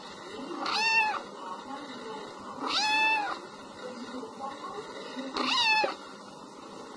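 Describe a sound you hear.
A kitten mews loudly and shrilly.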